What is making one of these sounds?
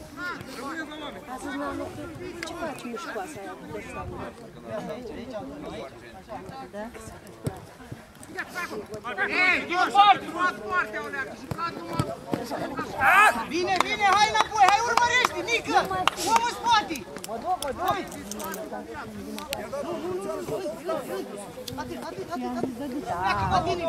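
Male players shout and call out to each other across an open field.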